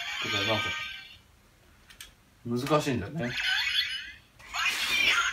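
A handheld toy gadget plays bright electronic sounds.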